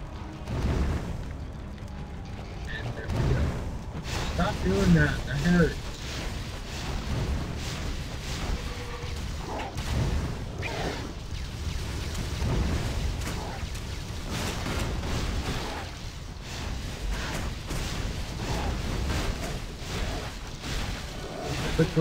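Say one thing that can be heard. Game spells crackle and burst during a fight.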